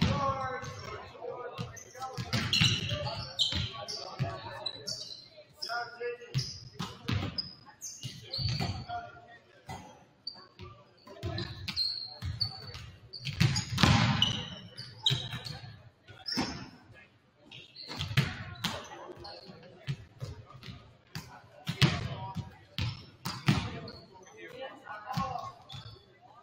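A volleyball is hit with sharp slaps in a large echoing gym.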